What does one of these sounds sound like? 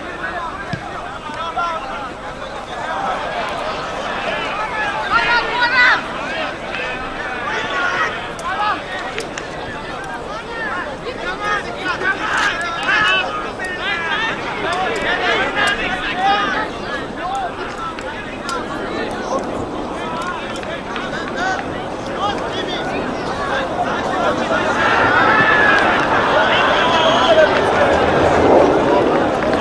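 A large outdoor crowd chatters and calls out throughout.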